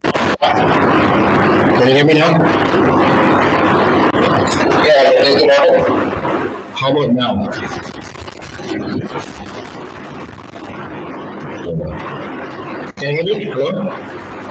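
A man speaks calmly over an online call.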